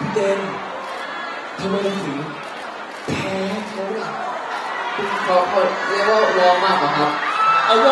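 A young man speaks into a microphone, heard over loudspeakers.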